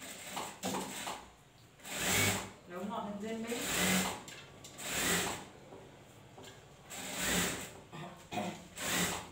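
A sewing machine whirs in short bursts.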